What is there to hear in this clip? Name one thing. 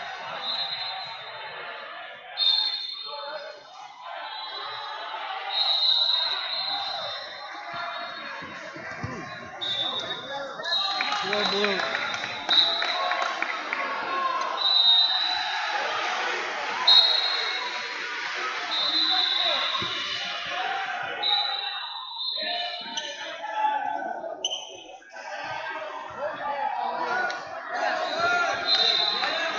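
A referee's whistle blows in short, shrill bursts, again and again.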